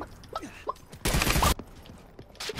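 A blast booms in a video game.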